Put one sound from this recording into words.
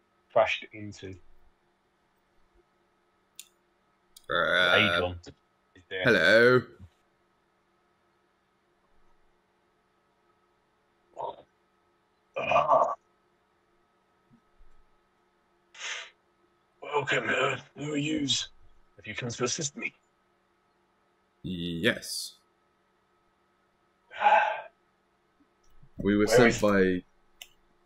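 Men talk with animation over an online call, in short bursts with pauses.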